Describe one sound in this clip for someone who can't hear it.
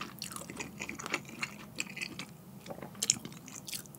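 Chopsticks clink against a ceramic bowl.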